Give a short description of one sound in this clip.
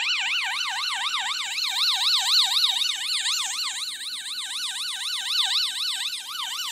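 An alarm siren wails loudly with a fast rising and falling warble.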